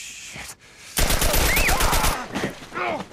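Automatic gunfire rattles in a loud burst.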